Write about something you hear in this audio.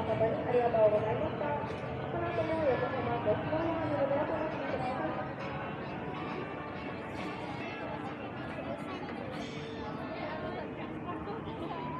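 Voices of men and women chatter nearby outdoors.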